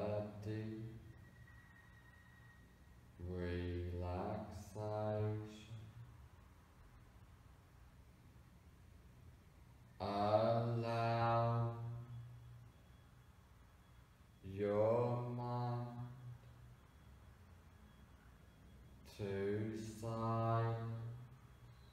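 A man speaks calmly and slowly, in phrases separated by long pauses.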